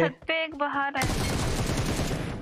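Rifle shots ring out.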